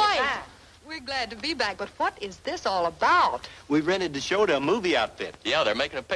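A young woman speaks brightly close by.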